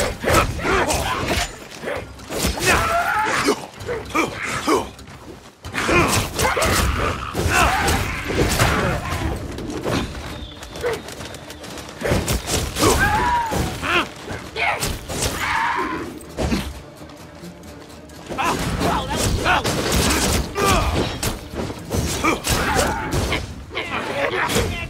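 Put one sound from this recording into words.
Blades clash and strike in quick bursts of fighting.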